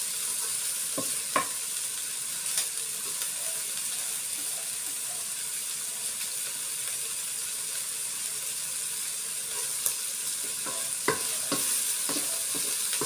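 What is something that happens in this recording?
A wooden spatula scrapes and knocks against a metal pan.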